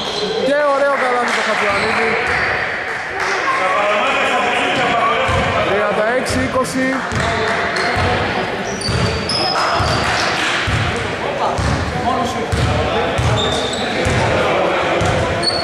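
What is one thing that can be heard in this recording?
Men shout and call out across the hall.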